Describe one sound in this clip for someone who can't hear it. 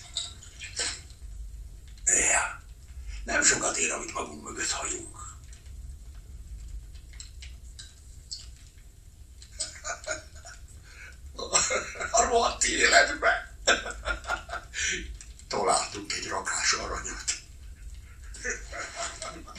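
A man speaks quietly.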